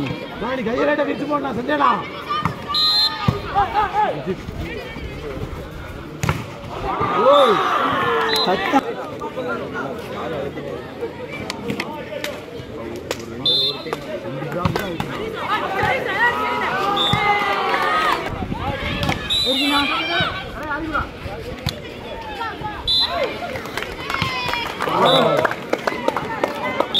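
Young men shout and call out to each other loudly.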